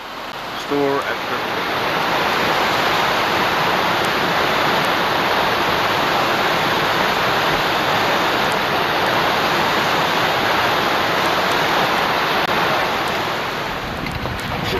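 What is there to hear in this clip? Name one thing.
A waterfall roars and splashes steadily into a pool.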